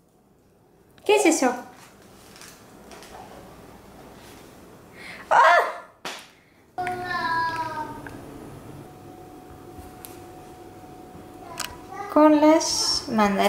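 A little girl talks in a high voice close by.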